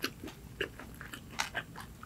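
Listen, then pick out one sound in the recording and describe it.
A young woman sips a drink close to a microphone.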